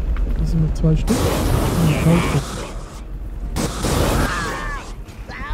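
Fiery blasts burst loudly.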